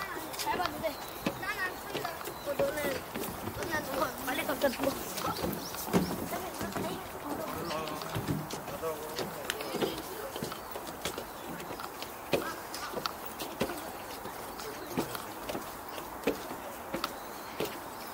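Footsteps thud steadily on wooden boards outdoors.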